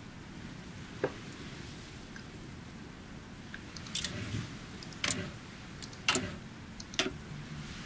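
Short interface clicks sound as menus open and close.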